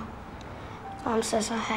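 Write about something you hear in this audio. A young boy speaks softly nearby.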